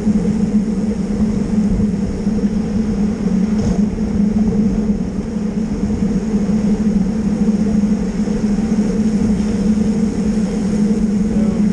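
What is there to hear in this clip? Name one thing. Bicycle tyres hum steadily on smooth asphalt.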